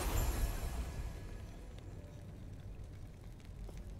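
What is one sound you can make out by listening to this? A magic portal hums and crackles, then fades.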